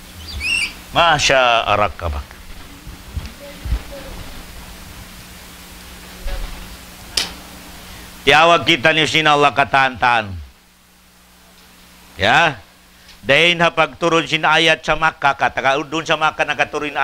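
A middle-aged man speaks steadily, as if teaching.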